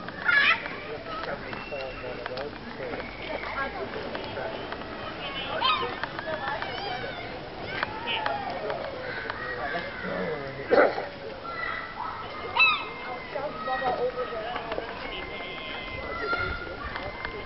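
Many birds chirp and twitter all around outdoors.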